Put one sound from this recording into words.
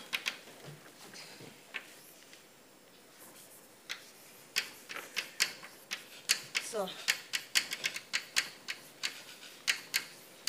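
Chalk taps and scrapes sharply on a blackboard.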